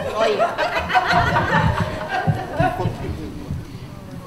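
Several men and women chatter close by.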